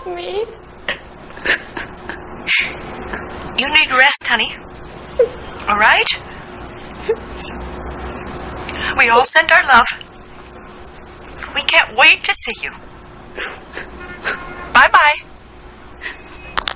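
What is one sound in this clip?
A young woman sobs and speaks tearfully into a phone, close by.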